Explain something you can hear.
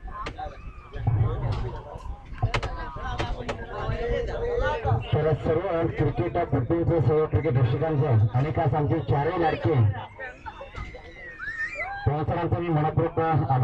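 A man speaks with animation through a microphone over loudspeakers.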